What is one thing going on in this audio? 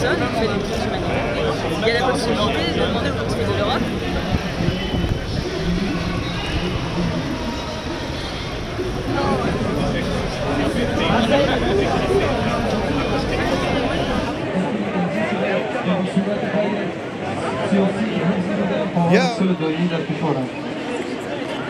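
A crowd of men and women chants and talks loudly outdoors.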